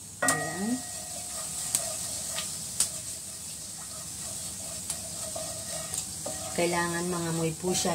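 Spices sizzle in hot oil.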